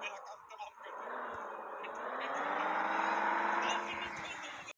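A car engine hums as the car drives along.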